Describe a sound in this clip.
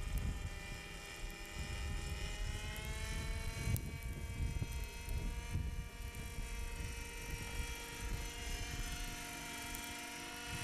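A model helicopter's engine whines steadily overhead, its pitch shifting as it passes.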